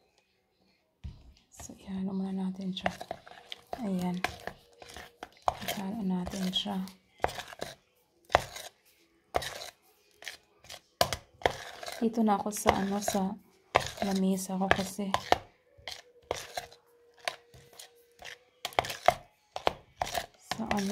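A metal spoon clinks and scrapes against a plastic cup while stirring.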